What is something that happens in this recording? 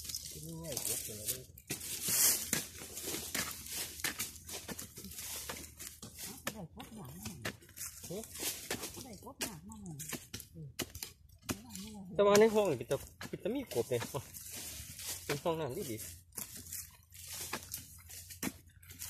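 A hoe chops repeatedly into dry soil and leaf litter.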